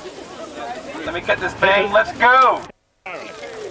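A man shouts loudly through a megaphone.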